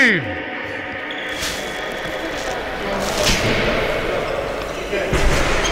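Footsteps squeak and thud on a hard floor in a large echoing hall.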